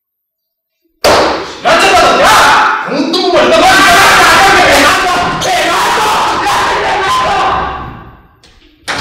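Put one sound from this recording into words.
A man shouts with animation nearby.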